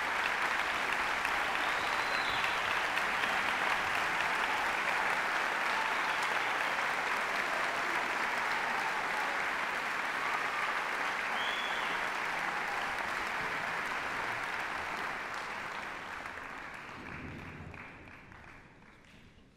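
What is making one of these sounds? A large crowd applauds loudly in an echoing hall, and the clapping slowly fades away.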